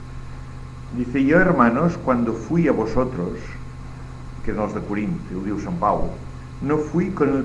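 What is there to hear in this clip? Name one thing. An elderly man speaks calmly and thoughtfully, heard through a microphone.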